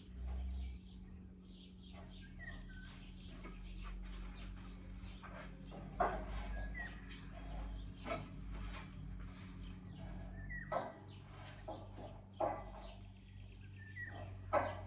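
Metal pieces clank and scrape against a steel beam.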